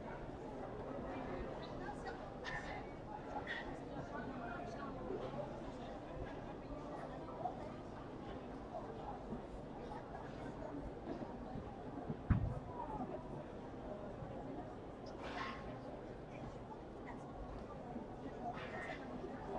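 Padel rackets strike a ball back and forth in a rally.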